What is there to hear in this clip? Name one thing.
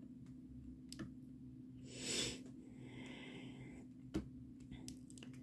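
A small tool taps and clicks softly on tiny plastic beads.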